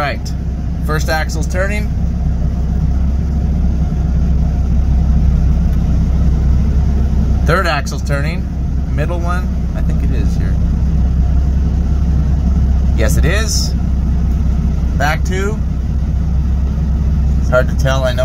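A diesel semi truck engine idles.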